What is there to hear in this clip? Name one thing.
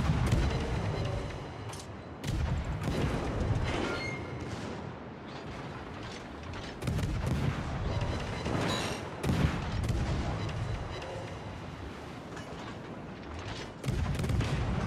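Heavy naval guns fire in loud, booming salvos.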